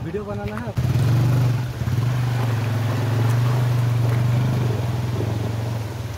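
Water splashes around the wheels of a motorcycle crossing a stream.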